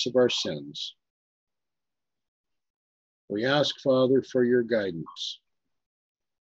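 A middle-aged man speaks calmly over an online call, in short phrases.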